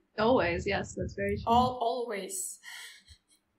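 A young woman speaks cheerfully through an online call.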